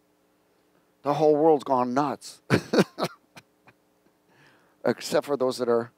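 A middle-aged man speaks with animation into a headset microphone.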